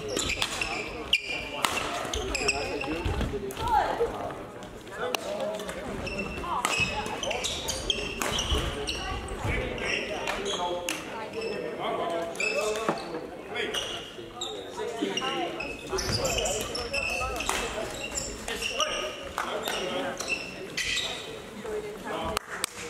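Shuttlecocks are struck with rackets in sharp pops that echo around a large hall.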